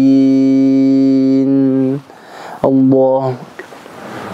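A man chants loudly through a microphone in an echoing hall.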